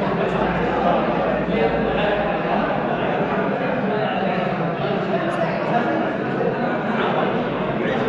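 A man speaks loudly and with animation to a group.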